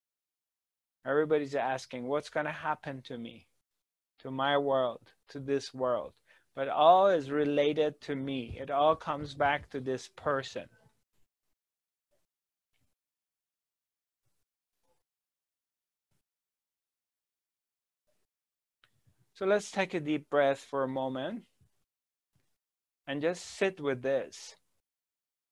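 A middle-aged man speaks calmly and closely into a microphone, with long pauses.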